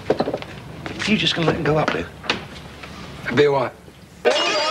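An older man speaks loudly with animation, close by.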